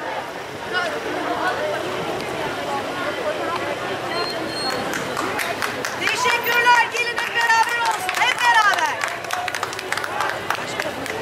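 Women in a marching crowd chatter among themselves.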